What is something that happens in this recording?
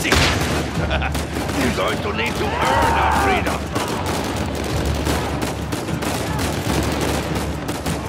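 Guns fire rapidly in repeated sharp shots.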